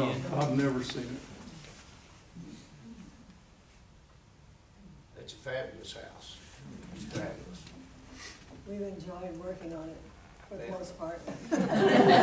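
A woman speaks to a group in a room with a slight echo.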